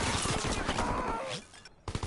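A shovel strikes a soldier with a heavy thud.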